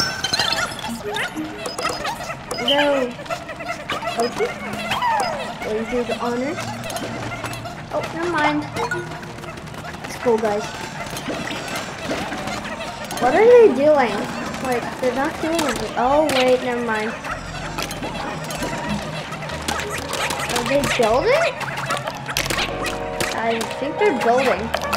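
Small creatures chirp and squeak in high, sliding voices.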